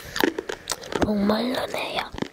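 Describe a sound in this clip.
A young girl hums briefly close to a microphone.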